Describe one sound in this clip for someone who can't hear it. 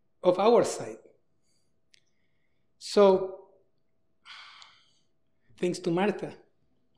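A man speaks slowly through a microphone in a large echoing hall, pausing between phrases.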